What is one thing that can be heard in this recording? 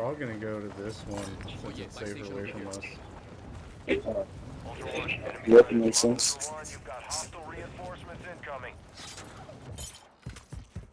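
Wind rushes past during a parachute descent.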